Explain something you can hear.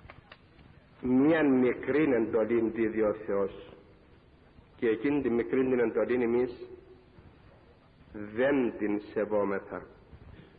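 An elderly man speaks slowly and solemnly into a microphone, in bursts with long pauses.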